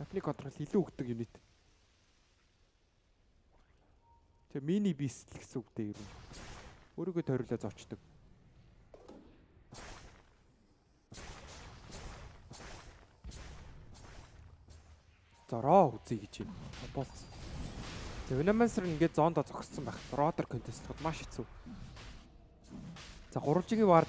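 Game spells crackle and whoosh in quick bursts.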